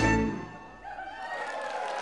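An orchestra ends on a loud held chord that rings out in a large hall.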